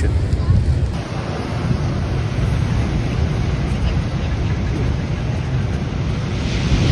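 Waves crash and wash onto a beach.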